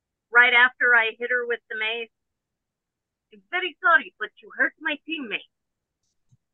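A woman speaks in short phrases over an online call.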